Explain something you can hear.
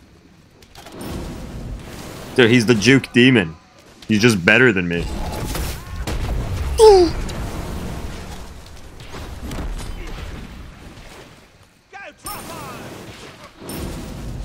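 Magic blasts whoosh and burst during a fight.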